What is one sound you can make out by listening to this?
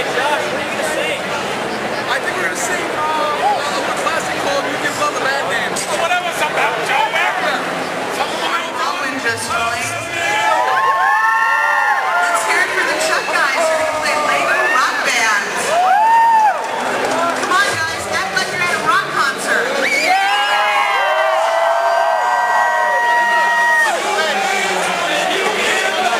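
A large crowd chatters noisily in a busy indoor hall.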